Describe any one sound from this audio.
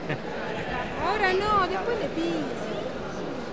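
A man calls out excitedly close by.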